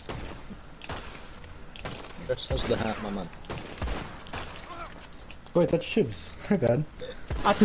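Gunshots crack sharply a few times.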